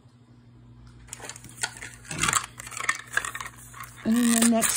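A foil packet crinkles as it is handled.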